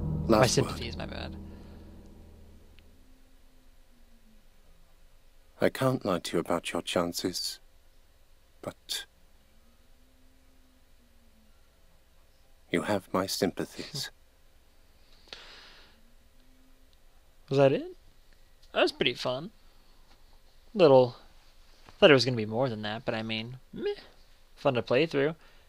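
A young man talks into a headset microphone, close and in short bursts.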